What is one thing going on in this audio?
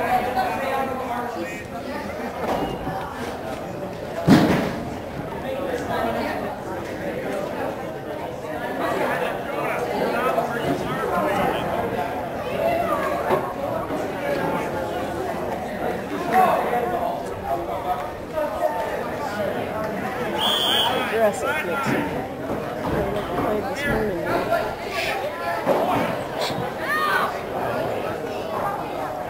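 Men and women chat and call out close by, outdoors.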